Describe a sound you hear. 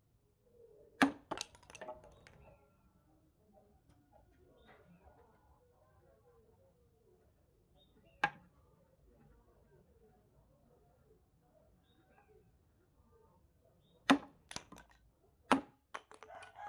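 A blade chops sharply into bamboo.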